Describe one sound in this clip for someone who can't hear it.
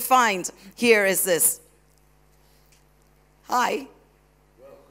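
A woman's voice cries out loudly in long sung phrases through a loudspeaker.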